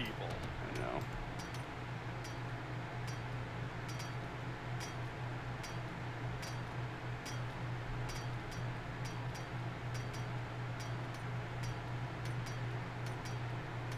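A club strikes a metal safe again and again with dull knocks.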